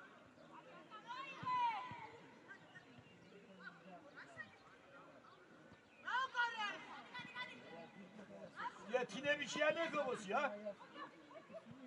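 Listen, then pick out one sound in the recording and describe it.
Young spectators shout and cheer from the side of an outdoor field.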